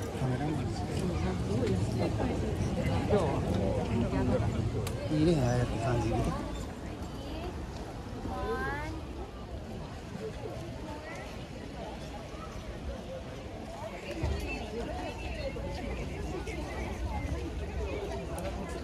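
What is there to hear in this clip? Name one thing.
A crowd of people chat outdoors at a distance.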